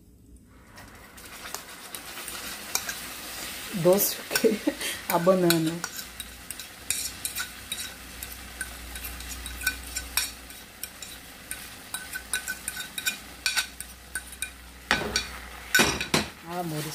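A fork scrapes a wet, mushy mixture off a plastic lid into a pot.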